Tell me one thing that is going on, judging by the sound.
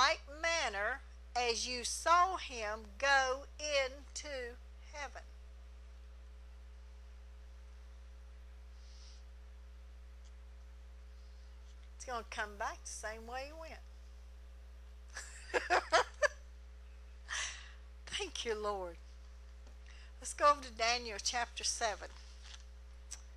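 A middle-aged woman speaks calmly into a microphone, with pauses.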